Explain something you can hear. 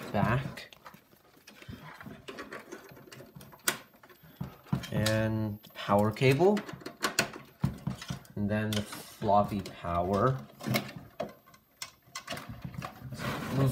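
Plastic connectors click and rattle as cables are plugged in.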